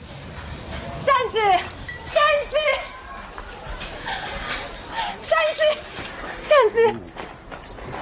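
A young woman calls out a name with emotion, close by.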